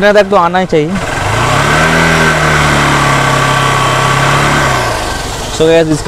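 A motorcycle engine hums nearby, rising and then falling away.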